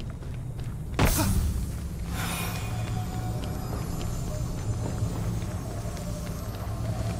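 A magical force hums and crackles while lifting a boulder.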